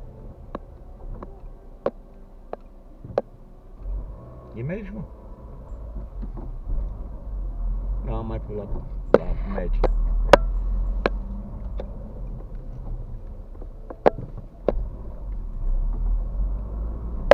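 A car engine rumbles low from inside the car as it drives.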